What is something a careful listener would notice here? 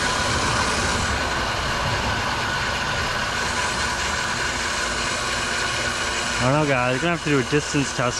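A jet of water sprays from a pressure wand.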